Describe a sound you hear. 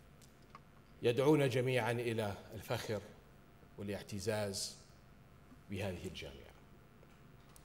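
A man gives a speech calmly through a microphone.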